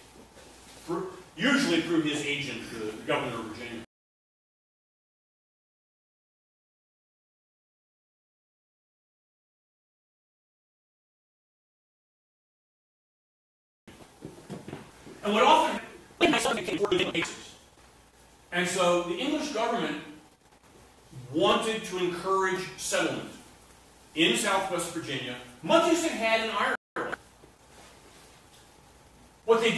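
A man speaks to an audience through a microphone in a lively, animated way.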